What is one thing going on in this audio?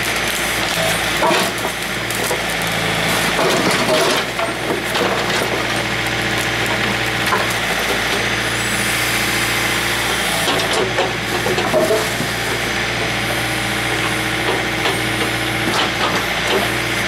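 A hydraulic arm whines as it moves.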